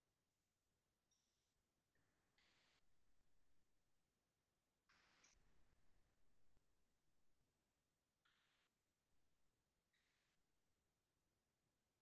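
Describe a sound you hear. An elderly man speaks calmly and quietly over an online call.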